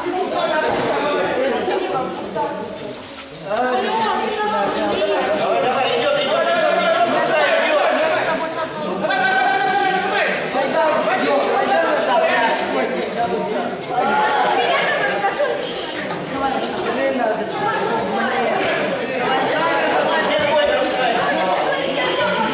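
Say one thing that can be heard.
Many children chatter and call out in a large echoing hall.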